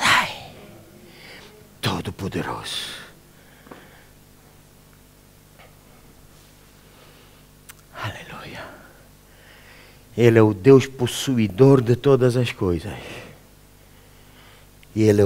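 A middle-aged man speaks with animation through a microphone, pausing at times.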